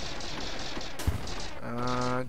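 Laser shots fire in quick bursts.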